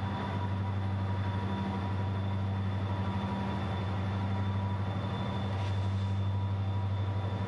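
Diesel locomotives rumble and throb steadily nearby as a freight train approaches.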